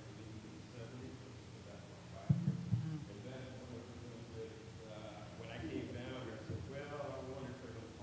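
A man speaks into a microphone over a loudspeaker in a large echoing hall.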